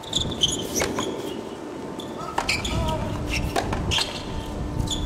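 A tennis ball is struck with a racket, with sharp pops.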